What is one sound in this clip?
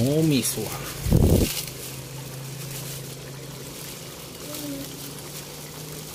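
Sauce bubbles and simmers softly in a pan.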